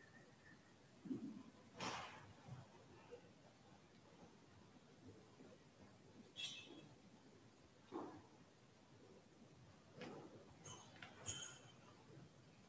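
Heavy cloth robes rustle as a person kneels and rises.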